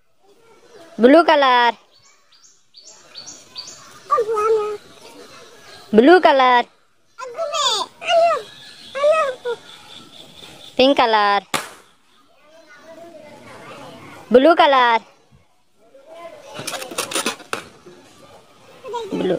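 Small children shout and babble playfully.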